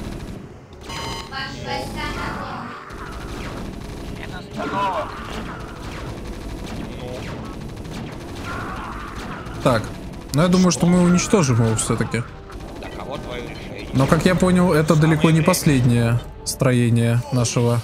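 Game units fire weapons in a battle.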